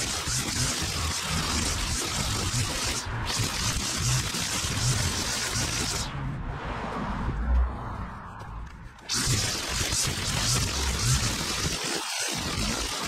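A string trimmer whines loudly up close, dropping off briefly before revving up again.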